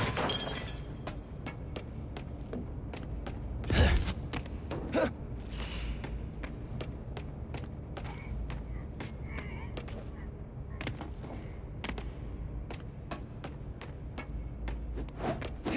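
Footsteps run quickly across a hard floor.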